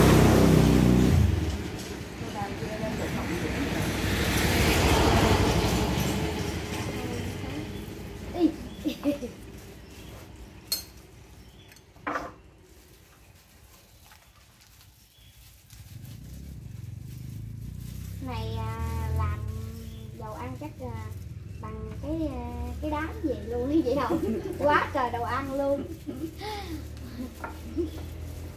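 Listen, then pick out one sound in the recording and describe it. Dishes and utensils clink on a table.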